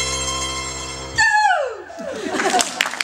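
A small band plays and holds a final chord, then the notes slide down.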